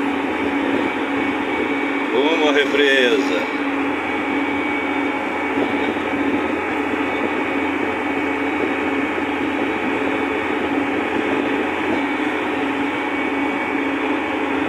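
A tractor engine rumbles steadily while driving along a bumpy dirt track.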